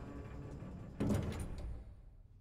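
A heavy metal door slams shut.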